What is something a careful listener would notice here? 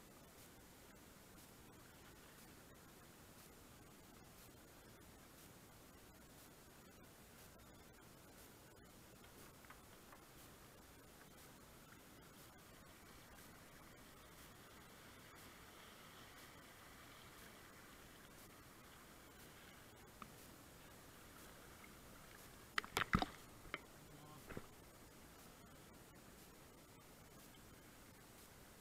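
River water rushes and splashes steadily around a kayak.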